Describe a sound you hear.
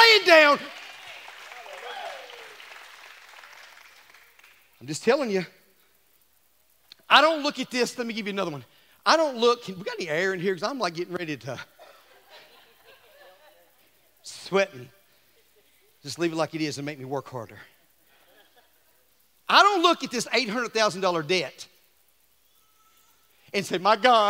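A middle-aged man speaks with animation through a headset microphone, in bursts with pauses, in a reverberant hall.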